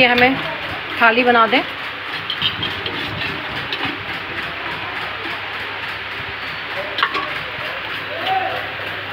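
A metal ladle clinks against steel bowls.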